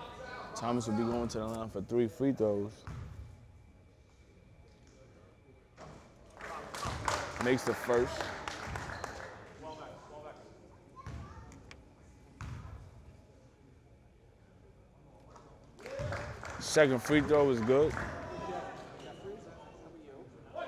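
A basketball bounces on a hard court in an echoing hall.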